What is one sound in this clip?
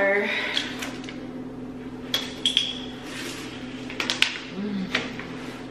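A plastic water bottle crinkles in a hand.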